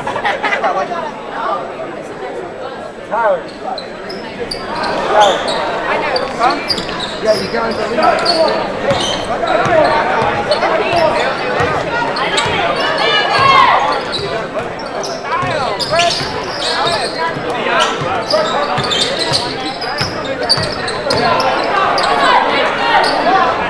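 A crowd chatters and cheers throughout a large echoing gym.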